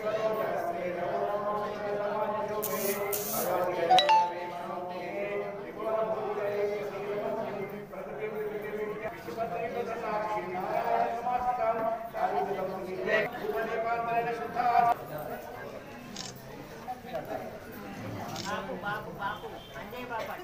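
Men chant a prayer together in a steady, droning tone.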